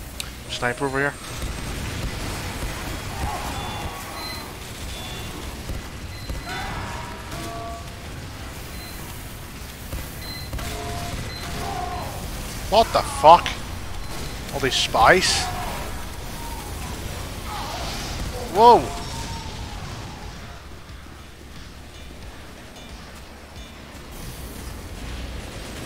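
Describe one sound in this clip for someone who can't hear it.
Shotguns fire in quick bursts with heavy thuds.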